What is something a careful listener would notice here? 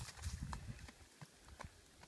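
Footsteps run on a dirt trail.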